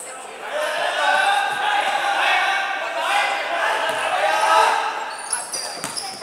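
Young men shout and call out loudly in a large echoing hall.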